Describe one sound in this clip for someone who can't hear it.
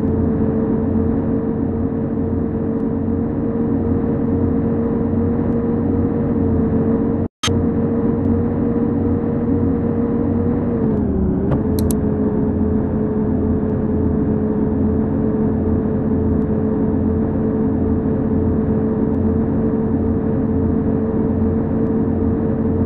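A bus engine hums steadily while driving on a highway.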